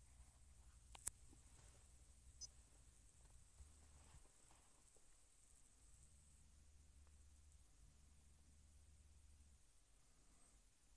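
A finger taps a touchscreen with soft clicks.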